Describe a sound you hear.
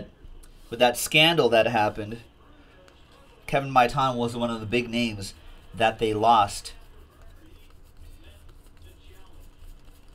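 Trading cards rustle and flick as a hand shuffles through them.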